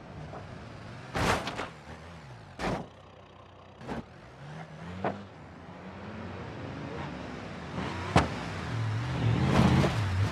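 Tyres thump hard over bumps in the road.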